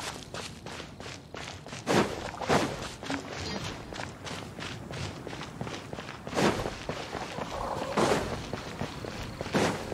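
Quick footsteps patter on grass and then on stone.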